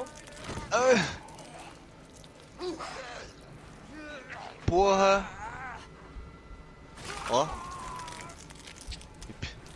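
A knife stabs into flesh.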